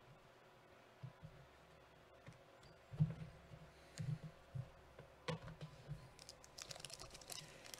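Foil card packs crinkle and rustle as they are handled.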